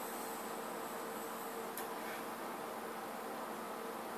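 A man breathes out a long puff of smoke.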